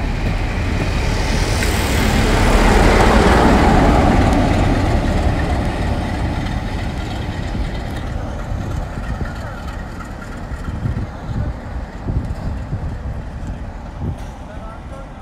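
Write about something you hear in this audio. Train wheels rumble and clatter along the rails.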